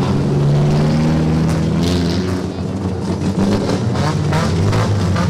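A rally car engine idles loudly and revs as the car rolls slowly closer.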